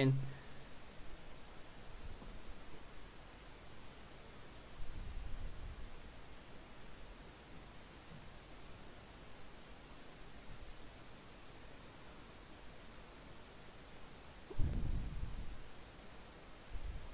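A man speaks quietly into a close microphone.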